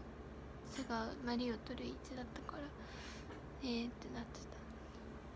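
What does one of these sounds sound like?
A young woman speaks softly and close to the microphone.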